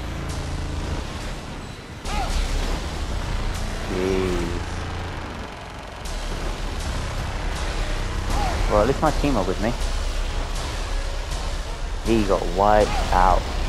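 A heavy explosion booms and rumbles.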